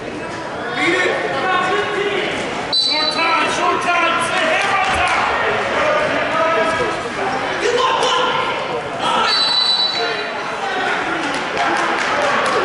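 A crowd of spectators shouts encouragement in a large echoing hall.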